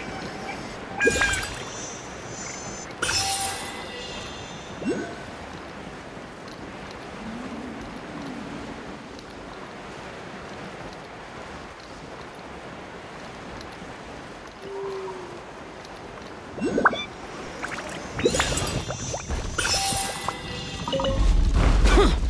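Game sound effects chime and whoosh as items are picked up.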